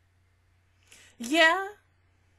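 A young woman lets out a short groaning cry into a close microphone.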